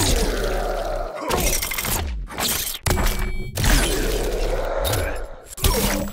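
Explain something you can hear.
Heavy punches thud and blood splatters wetly.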